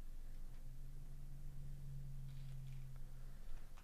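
Plastic card wrappers crinkle softly as hands handle them.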